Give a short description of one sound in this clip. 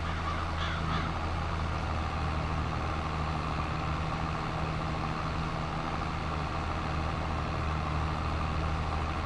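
A forage wagon rumbles along as it gathers grass.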